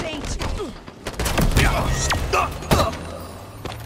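Loud gunshots and blasts ring out in quick bursts.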